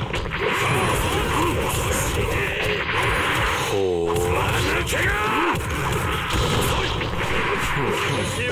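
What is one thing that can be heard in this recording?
Punches and kicks land in a rapid flurry of hits.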